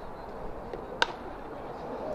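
A baseball bat cracks against a ball.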